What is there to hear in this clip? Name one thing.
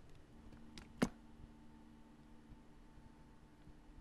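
A plastic ketchup bottle is squeezed, squirting with a squelch.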